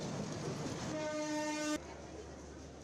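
A train horn sounds loudly.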